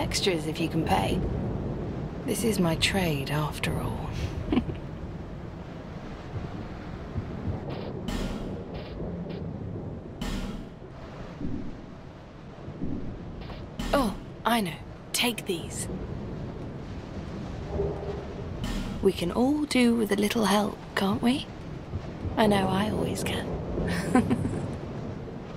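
A young woman speaks cheerfully and playfully.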